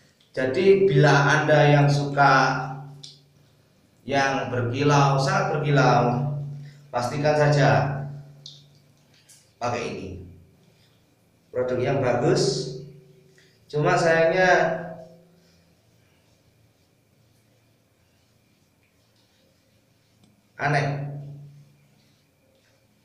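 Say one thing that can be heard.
A young man talks with animation close by, in a small echoing room.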